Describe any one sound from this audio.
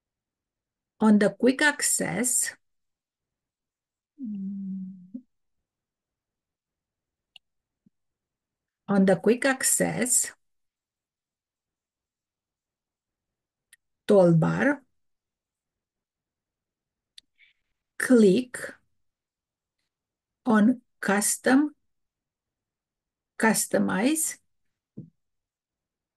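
A middle-aged woman speaks calmly in short phrases, close to a microphone.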